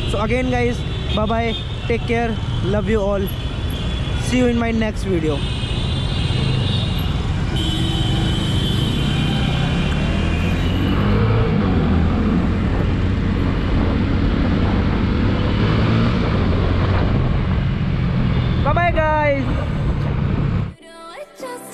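A motorcycle engine hums and rumbles steadily up close.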